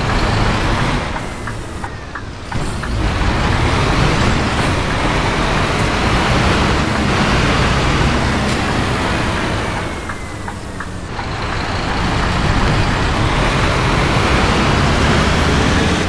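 Heavy rain patters steadily on a bus's windows.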